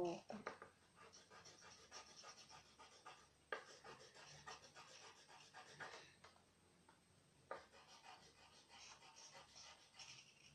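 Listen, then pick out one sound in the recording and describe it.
Felt-tip pens scratch softly on paper.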